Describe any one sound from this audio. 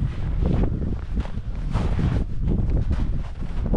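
Boots crunch in snow.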